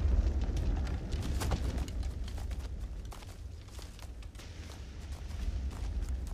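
Horses' hooves thud on the ground.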